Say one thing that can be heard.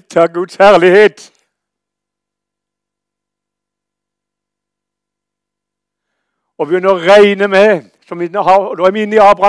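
An elderly man speaks with emphasis through a microphone.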